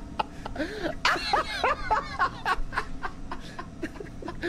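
A cartoon man cackles loudly.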